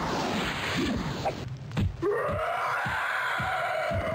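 A sword strikes a shield with a sharp clang.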